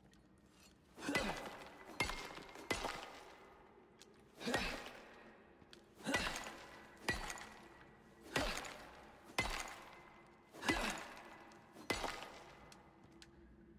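A pickaxe strikes rock again and again with sharp ringing blows.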